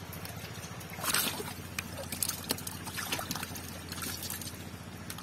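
Catfish thrash and slap wetly against each other in a plastic crate.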